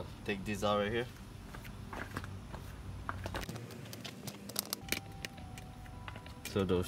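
Small plastic parts click and tap as a car door is worked on.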